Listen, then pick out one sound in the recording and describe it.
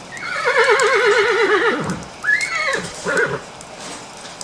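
A horse neighs loudly.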